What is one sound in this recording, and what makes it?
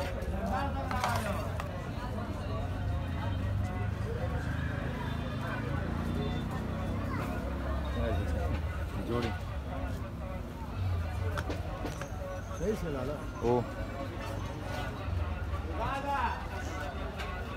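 Men's voices call out nearby in a busy crowd.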